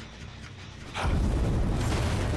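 Flames crackle and roar from a burning machine.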